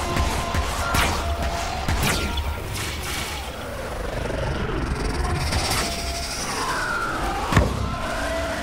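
Magical blasts burst with sharp, crackling impacts.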